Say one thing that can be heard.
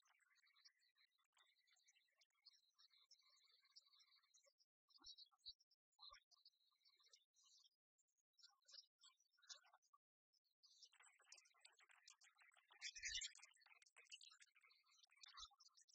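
Game pieces click on a wooden table.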